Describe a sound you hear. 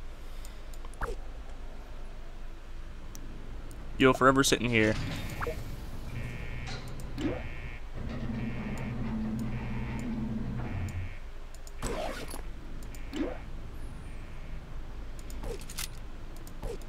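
Soft clicks of a game menu sound now and then.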